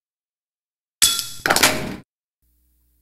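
Short electronic menu beeps chime.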